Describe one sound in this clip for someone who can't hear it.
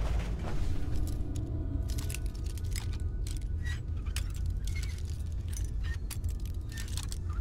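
A metal lock pick clicks and scrapes inside a lock.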